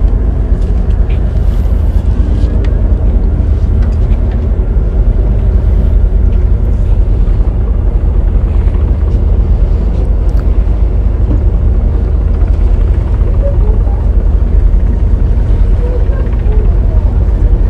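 Wind buffets the microphone outdoors with a steady low rumble.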